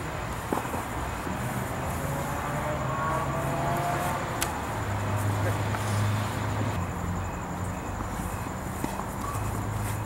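Feet scuff on grass.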